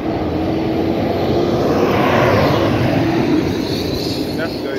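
A truck pulling an empty flatbed trailer rumbles past close by.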